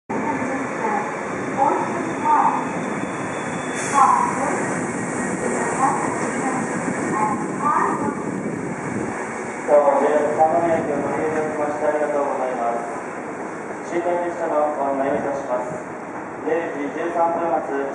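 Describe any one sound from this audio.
A train rumbles past along the tracks, close by.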